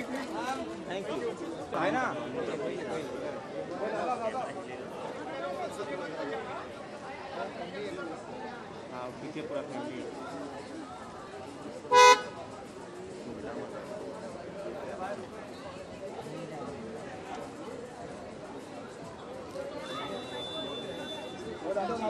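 Several men talk and call out nearby in a busy crowd outdoors.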